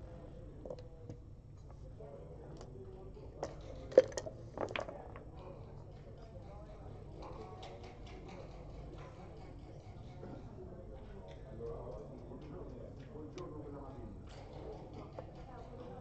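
Checkers click as a hand moves them on a board.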